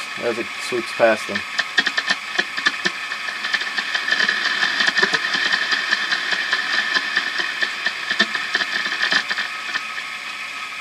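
Static crackles and pops from a radio receiver.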